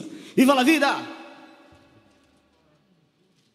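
A band strikes a loud final chord on electric guitars, bass and keyboard that rings out and fades away.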